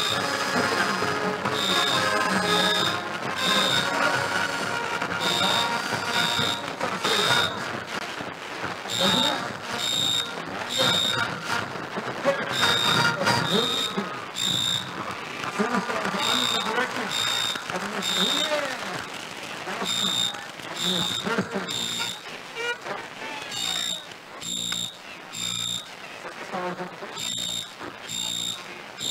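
A marching band plays brass music outdoors.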